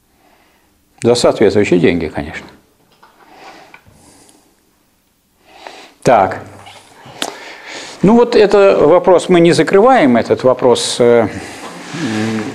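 An elderly man speaks calmly and at length.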